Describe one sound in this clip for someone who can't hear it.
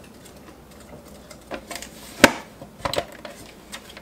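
A plastic lid clicks into place on a food processor.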